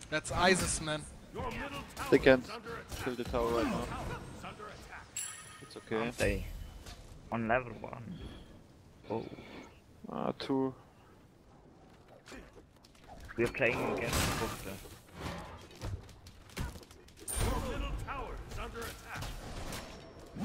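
Game sound effects of fighting and spells ring out.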